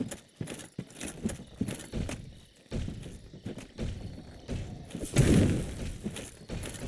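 Heavy metal armour clanks as a large knight lumbers close.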